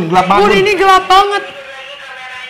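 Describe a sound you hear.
A young man shouts excitedly nearby.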